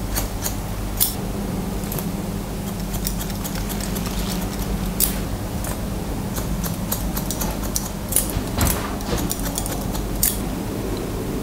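Scissors snip through hair in quick crisp clicks.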